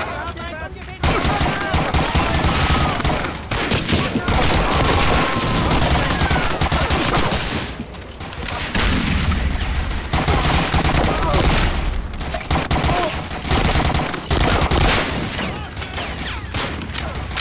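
A rifle fires loud shots in rapid bursts.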